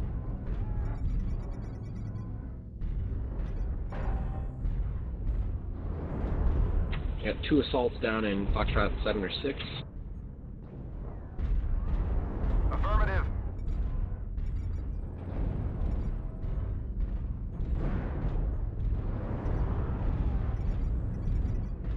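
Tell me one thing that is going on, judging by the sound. A large walking machine's engine rumbles low and steadily.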